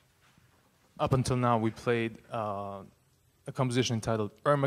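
A man speaks into a microphone over a loudspeaker in a room with some echo.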